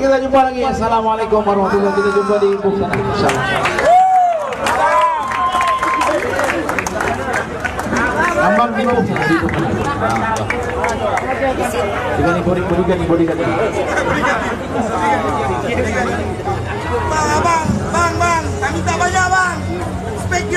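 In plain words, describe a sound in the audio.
A live band plays loud rock music.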